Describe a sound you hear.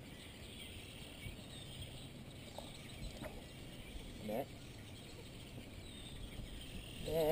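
Wind rumbles outdoors across open water.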